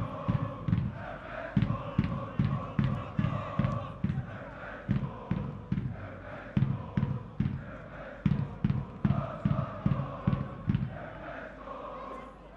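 A large crowd chants in unison in an open stadium.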